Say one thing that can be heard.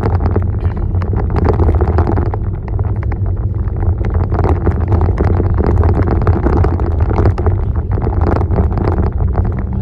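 Tyres rumble and crunch over a dirt road.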